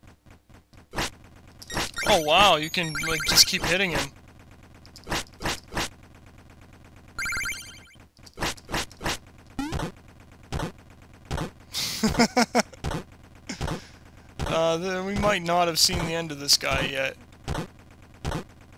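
Sharp video game blows clank again and again.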